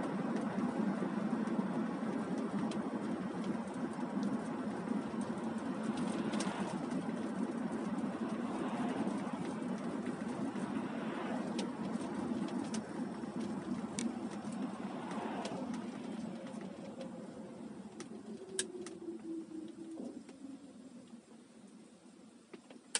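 A car's tyres roll steadily over a wet road, heard from inside the car.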